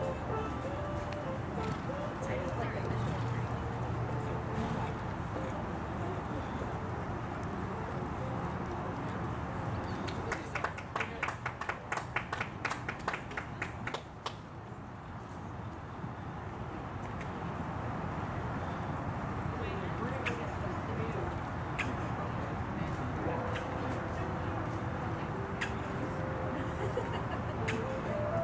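A horse's hooves thud softly on loose dirt in a steady trot.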